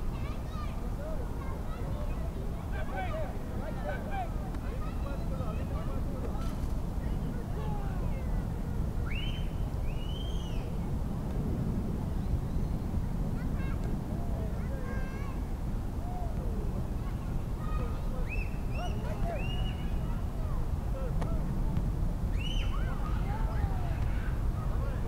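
Young men shout and call to each other from some distance outdoors.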